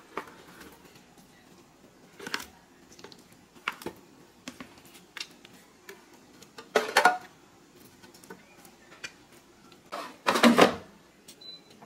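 Raw chicken pieces plop into an air fryer basket.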